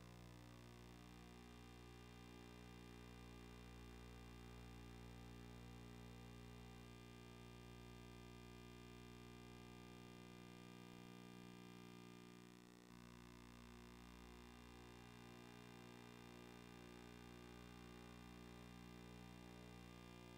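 Electronic game music plays steadily throughout.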